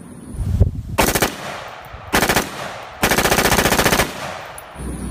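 A rifle fires rapid loud shots outdoors.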